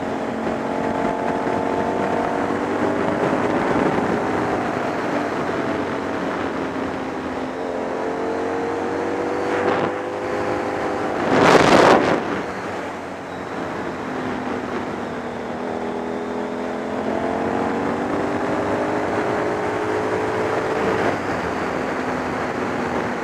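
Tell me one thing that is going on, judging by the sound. A motorcycle engine hums steadily, rising and falling in pitch as it speeds up and slows down.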